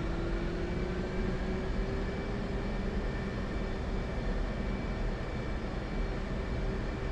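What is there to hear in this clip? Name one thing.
A jet engine idles with a steady, low roar and a high whine.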